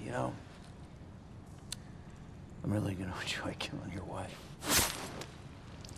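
A man speaks low and menacingly, close by.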